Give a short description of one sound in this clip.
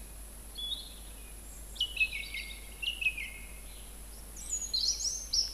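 A songbird sings clear, varied phrases.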